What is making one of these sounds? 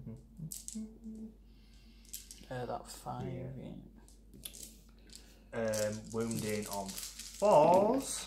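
Plastic dice click together as a hand picks them up.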